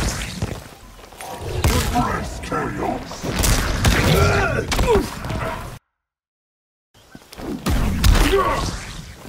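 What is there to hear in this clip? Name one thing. Video game fight sound effects whoosh and thud as blows land.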